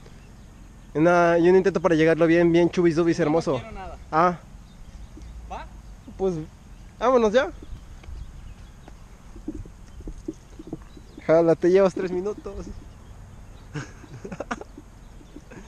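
A young man talks with animation, close by, outdoors.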